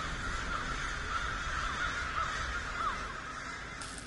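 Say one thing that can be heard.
A flock of birds chirps overhead.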